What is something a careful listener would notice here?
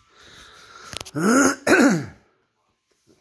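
A dog barks loudly twice.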